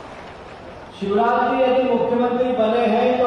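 An older man speaks forcefully into a microphone, heard over loudspeakers in an open space.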